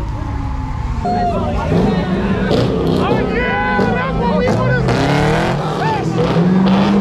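A crowd of people shouts and cheers outdoors.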